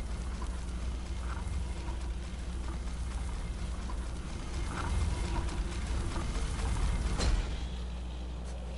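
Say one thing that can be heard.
A deep magical hum drones steadily from a glowing orb.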